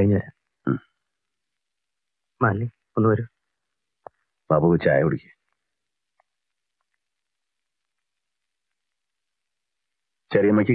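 A man speaks in short, tense phrases nearby.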